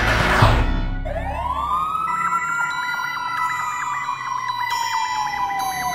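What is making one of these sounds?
A siren wails and slowly winds down.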